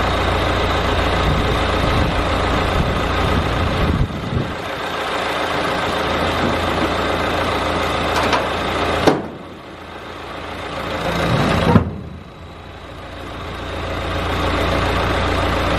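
A small petrol engine runs loudly close by, its note dipping and recovering now and then.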